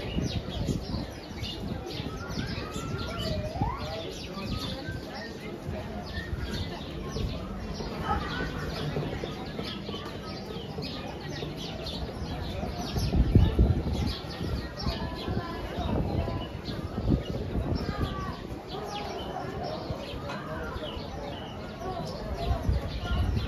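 A crowd of people chatters outdoors at a distance.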